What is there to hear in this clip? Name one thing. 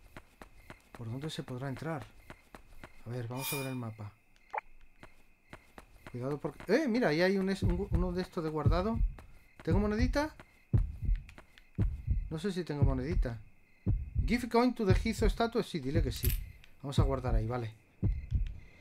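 A man talks calmly and with animation close to a microphone.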